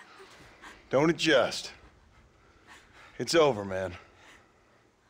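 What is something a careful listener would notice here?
Another man speaks firmly in a low voice.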